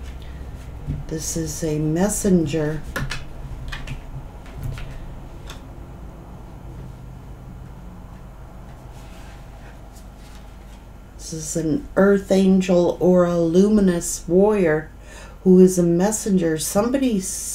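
A middle-aged woman speaks calmly close to a microphone.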